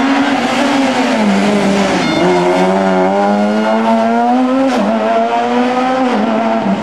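A car engine roars loudly, revving up and down.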